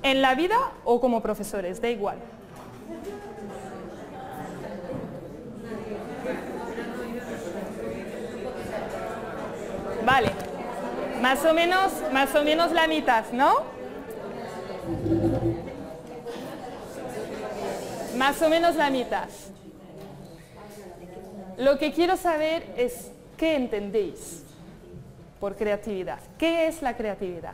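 A young woman speaks with animation to an audience in a room with some echo.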